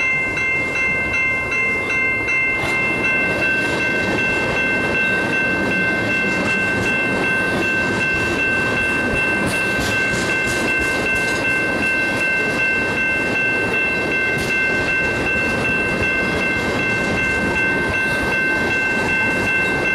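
Freight train cars rumble past close by.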